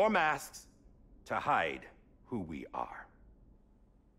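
A man speaks with feeling, in a deep, slow voice.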